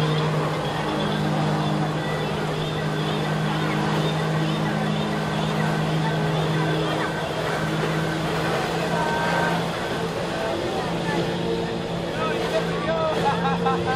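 Water jets roar and spray onto the water surface.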